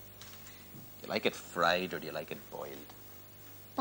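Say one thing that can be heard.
A young boy answers in a small voice.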